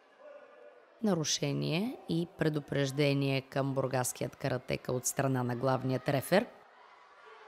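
A man announces loudly over a loudspeaker in a large echoing hall.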